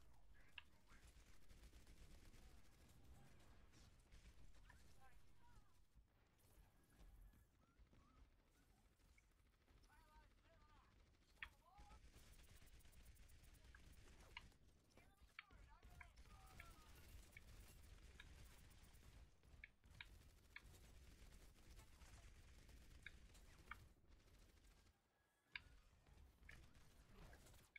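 A game gun fires rapid bursts of shots.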